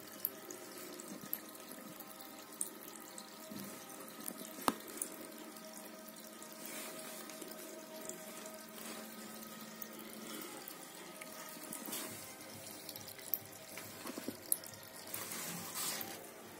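Air bubbles gurgle softly up through water.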